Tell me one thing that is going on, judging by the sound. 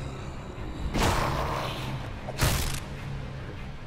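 A bat strikes a body with heavy, wet thuds.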